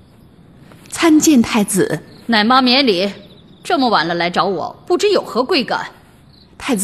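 A young man speaks in a relaxed, teasing voice.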